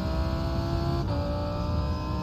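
A racing car engine drops briefly in pitch as a gear changes.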